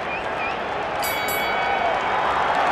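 A bell rings to start a round.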